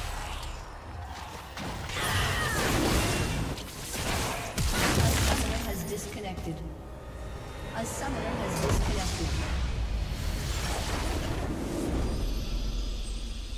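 Magic blasts and whooshes burst loudly during a video game battle.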